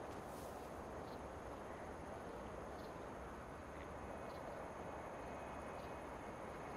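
Footsteps rustle through leafy bushes.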